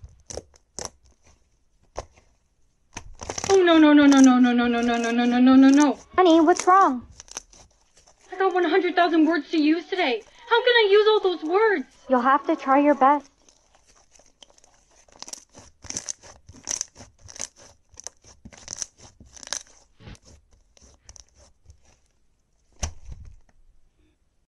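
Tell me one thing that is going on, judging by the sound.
Slime squishes and crackles under hands.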